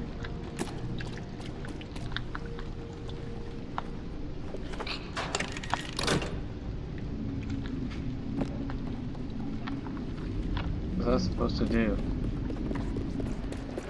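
Small footsteps tap and creak on wooden floorboards.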